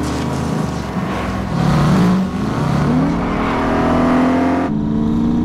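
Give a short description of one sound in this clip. Car engines roar and rev loudly at speed.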